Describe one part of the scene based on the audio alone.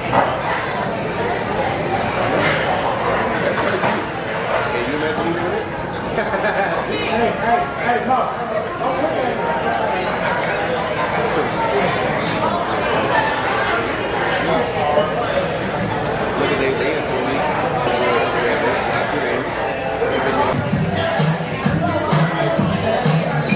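A crowd murmurs in the background of a busy room.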